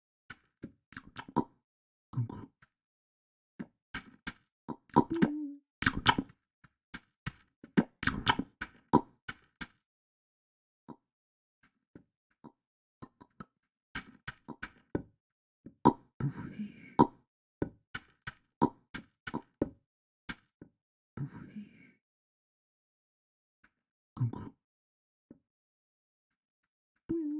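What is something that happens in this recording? Soft footsteps tap in quick, uneven bursts.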